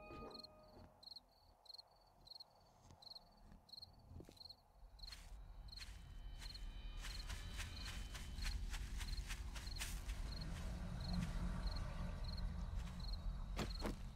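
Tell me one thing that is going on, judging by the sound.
Footsteps tread steadily on a road and then through grass.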